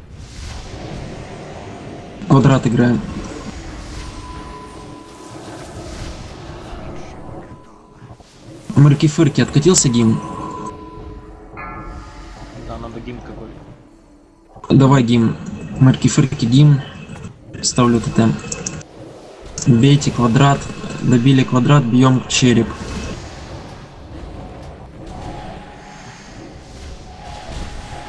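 Magic spells crackle and clash in a noisy battle.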